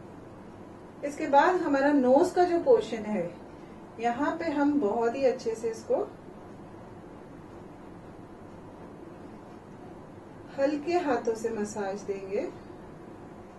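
A woman speaks calmly into a nearby microphone, in short bursts.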